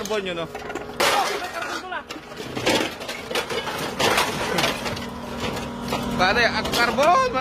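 Scrap metal clanks and rattles as it is pulled from a pile.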